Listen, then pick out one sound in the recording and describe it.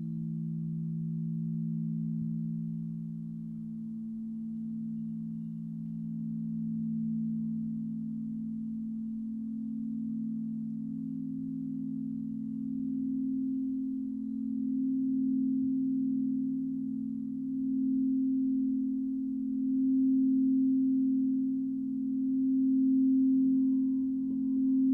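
Crystal singing bowls hum with deep, steady, swelling tones.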